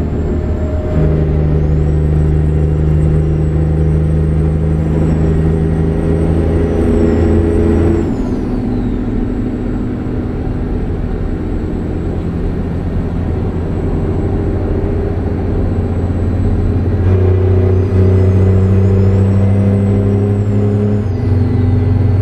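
A truck engine hums steadily, growing louder at times.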